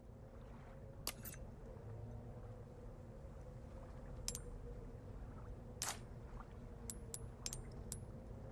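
Menu clicks and chimes sound in short blips.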